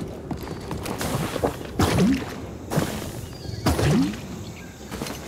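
A large plant creature makes loud, rough growls.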